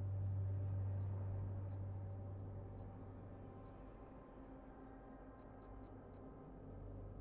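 Short electronic clicks sound as game menu tabs switch.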